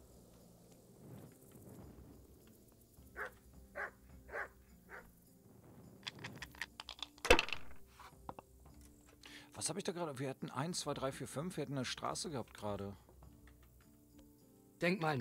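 Dice clatter and roll across a wooden table.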